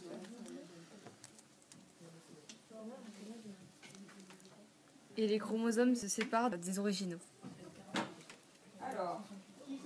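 Paper strips slide and rustle on a table.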